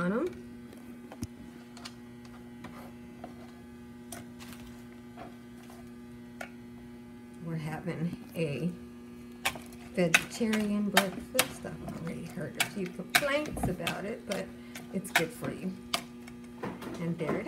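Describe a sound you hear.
A wire whisk clinks and scrapes against a bowl while beating a batter.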